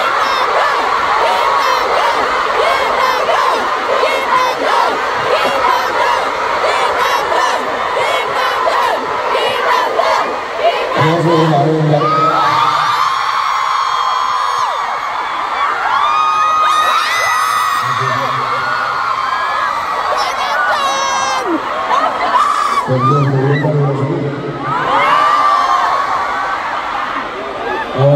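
A large crowd screams and cheers loudly in a big echoing arena.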